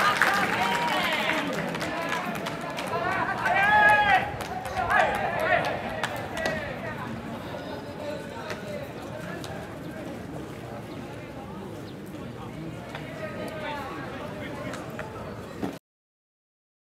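Young men shout and call out across an open outdoor field.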